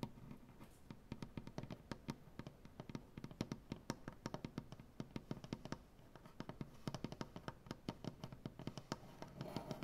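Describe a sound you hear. Fingernails tap rapidly on a wooden surface, close up.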